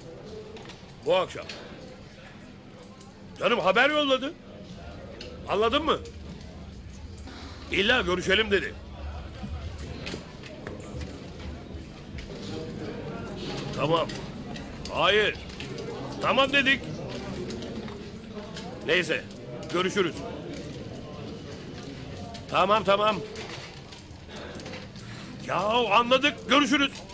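A middle-aged man speaks on a phone close by, in short bursts.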